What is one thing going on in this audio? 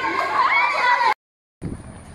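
Young girls shout and squeal excitedly close by.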